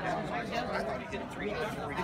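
Two men talk close by.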